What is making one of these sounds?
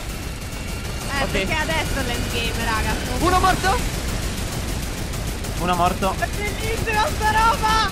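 A rapid-fire gun shoots in bursts.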